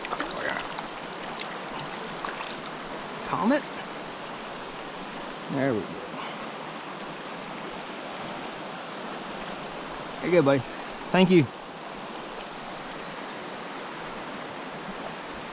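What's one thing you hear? A shallow stream babbles steadily over stones.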